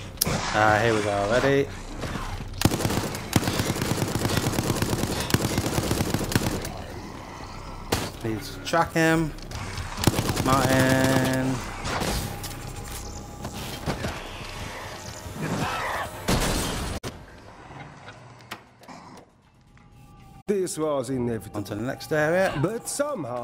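A man talks with animation into a microphone.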